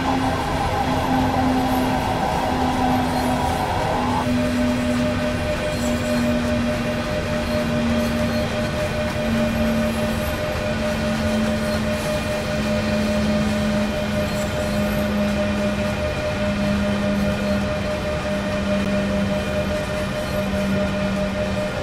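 An electric locomotive motor hums, its pitch slowly falling as the train slows.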